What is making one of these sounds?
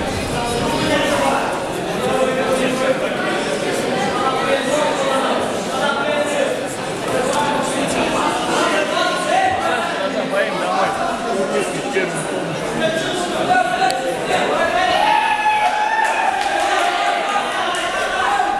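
A crowd of young men talks and shouts in a large echoing hall.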